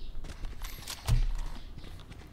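A gun is drawn with a sharp metallic click.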